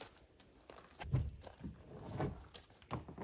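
A kayak scrapes and thumps on gravel.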